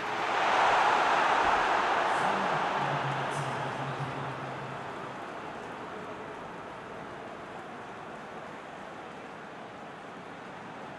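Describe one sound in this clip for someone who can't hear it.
A large crowd roars loudly, then the cheering slowly fades to a steady murmur.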